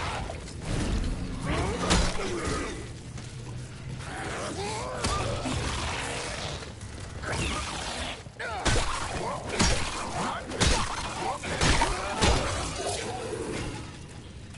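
A monster snarls and shrieks close by.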